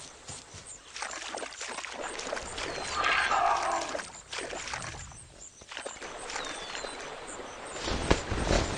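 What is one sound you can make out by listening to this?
Water splashes as an animal wades through a stream.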